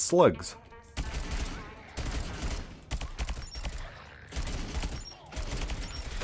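A rapid-fire gun shoots in short bursts.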